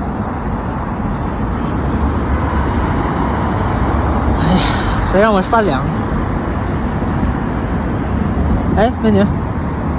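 Traffic hums steadily on a nearby street.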